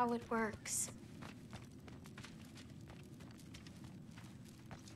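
Footsteps tap softly on stone.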